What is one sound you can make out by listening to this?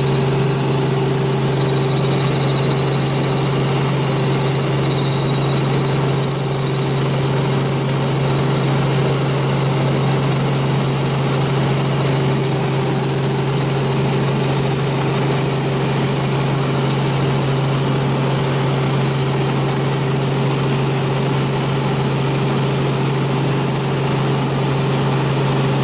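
A helicopter engine drones steadily with a loud rotor hum.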